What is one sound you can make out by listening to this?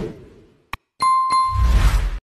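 A small bell chimes.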